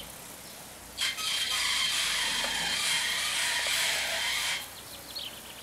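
A car engine runs as a car slowly backs out nearby.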